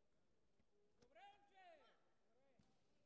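A young man shouts sharply as he kicks, echoing in a large hall.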